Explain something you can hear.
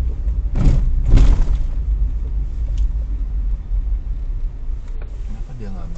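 Tyres crunch on a rough road.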